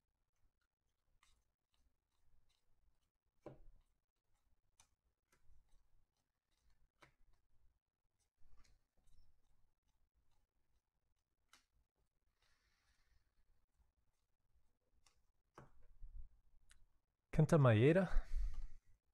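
Trading cards flick and slide softly against each other.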